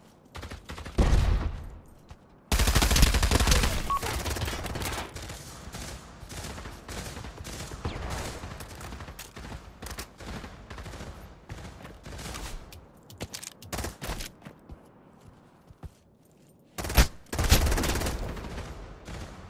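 A rifle fires in loud bursts close by.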